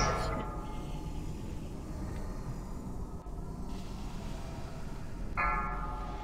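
Magic spells hum and ring out in bursts.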